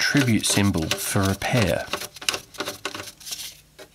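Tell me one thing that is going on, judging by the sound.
A screwdriver turns a screw with faint squeaks.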